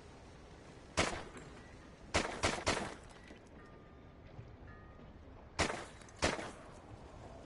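A pistol fires single sharp shots that echo briefly.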